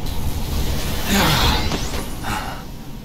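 Electricity crackles and sizzles.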